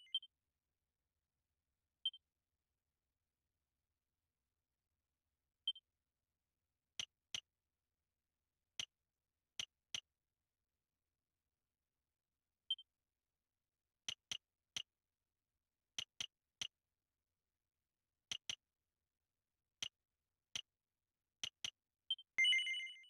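Game menu sounds click and blip as a cursor moves.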